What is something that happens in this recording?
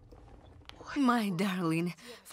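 A young woman speaks briefly.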